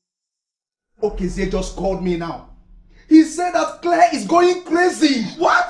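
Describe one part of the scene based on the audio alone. A man speaks angrily with animation, close by.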